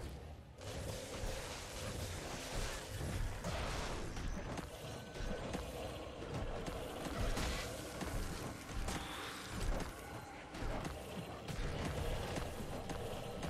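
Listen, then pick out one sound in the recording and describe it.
Weapons strike and clash repeatedly.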